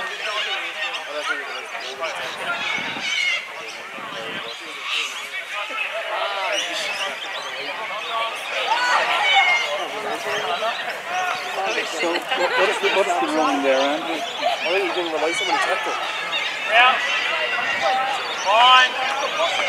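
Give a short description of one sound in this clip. Several young men shout and call out to one another outdoors.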